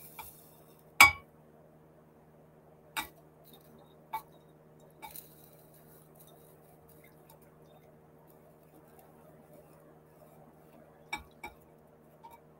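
A metal bowl clinks against a glass jug.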